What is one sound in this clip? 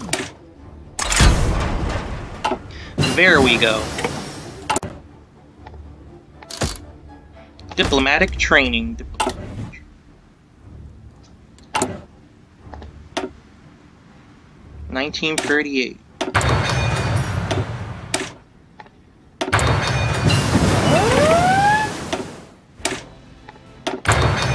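Short game menu clicks sound again and again.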